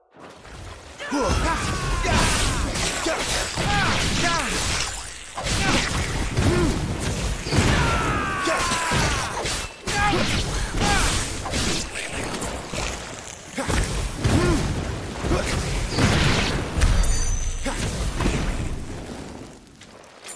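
Fiery blasts crackle and burst.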